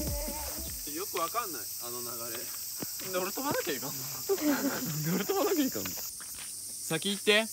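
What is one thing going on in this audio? A young man speaks casually close by.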